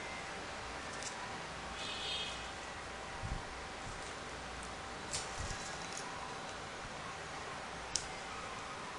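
Paper pieces rustle and click softly as hands fold them into a paper model.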